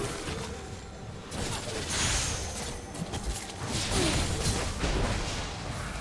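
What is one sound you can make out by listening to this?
Magic blasts and spell effects whoosh and crackle in a battle.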